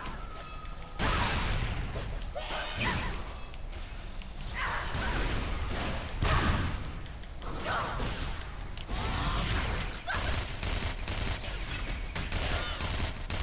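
Magic blasts burst and crackle loudly.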